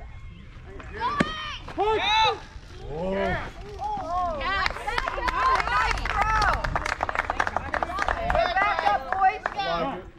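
Young spectators cheer and shout excitedly nearby.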